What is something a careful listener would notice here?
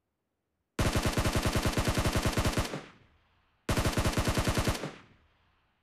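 A rifle fires rapid automatic bursts.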